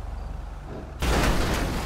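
A truck crashes with a loud thud as it lands.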